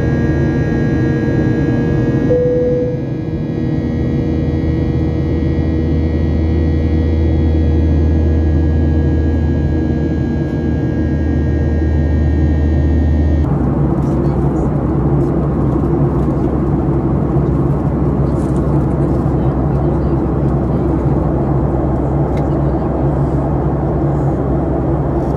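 A jet engine roars steadily, heard from inside the cabin.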